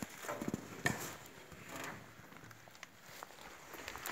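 A wooden stick knocks and scrapes inside a stone hollow.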